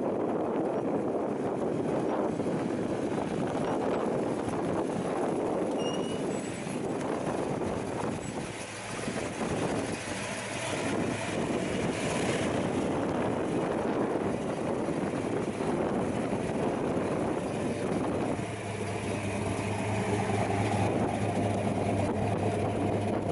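A car engine idles with a low rumble.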